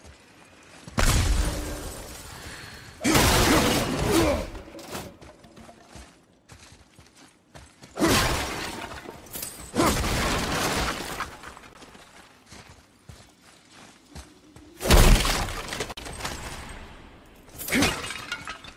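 Wooden crates smash and splinter loudly.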